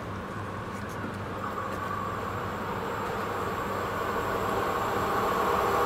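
A distant train approaches along the track, its rumble slowly growing louder.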